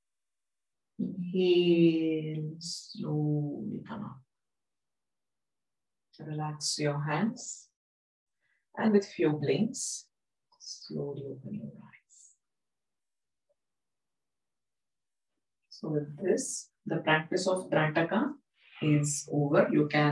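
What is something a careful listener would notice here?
A young woman speaks calmly into a nearby microphone, with pauses.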